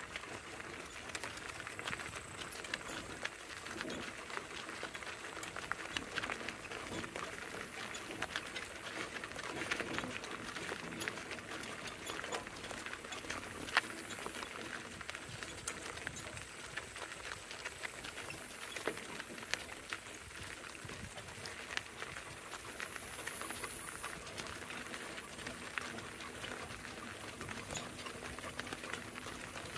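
Harness chains jingle with each step.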